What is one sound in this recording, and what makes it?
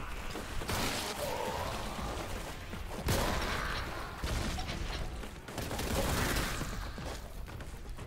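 Heavy guns fire in loud roaring bursts.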